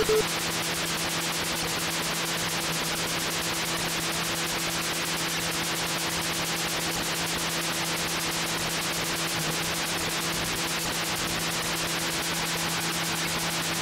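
A retro game car engine buzzes steadily with a rapid pulsing drone.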